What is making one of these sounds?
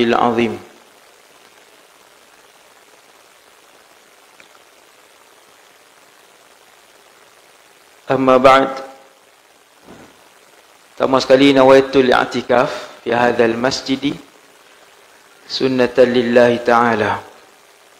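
A man speaks calmly into a headset microphone, with long pauses.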